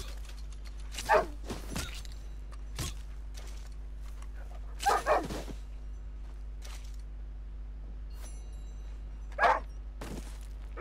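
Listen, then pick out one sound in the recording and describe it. A knife slices wetly through an animal's hide.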